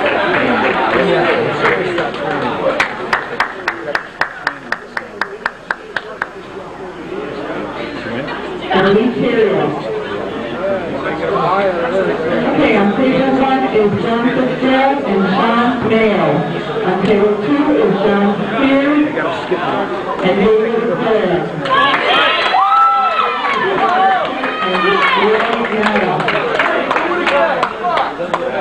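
A crowd of people talks and chatters in a large echoing hall.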